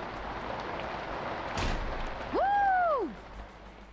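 A heavy metal door swings shut with a thud.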